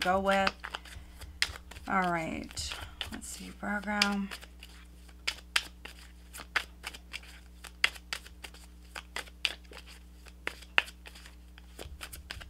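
Playing cards riffle and tap softly as they are shuffled by hand.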